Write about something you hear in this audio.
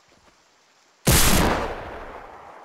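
A shotgun fires once with a loud blast that echoes away.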